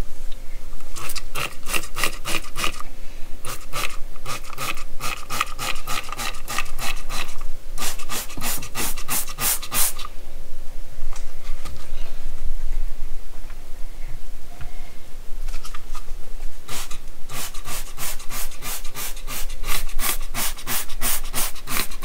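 A spray bottle squirts in rapid, repeated bursts.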